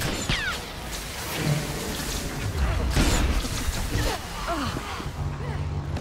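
Laser blasts and combat effects crackle and boom.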